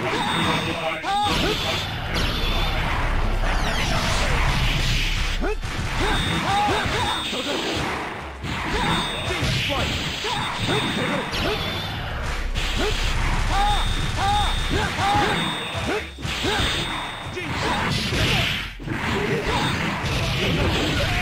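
Fighting game blasts, hits and energy beams crackle and boom throughout.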